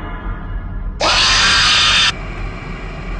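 A loud shrill screech blares suddenly.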